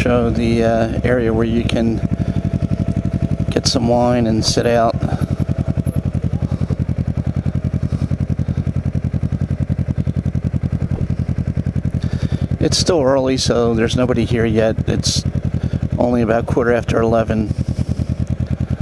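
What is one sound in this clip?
A motorcycle engine idles with a steady, throbbing rumble.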